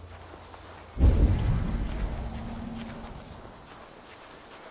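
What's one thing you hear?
A magical burst whooshes and rumbles loudly, then fades.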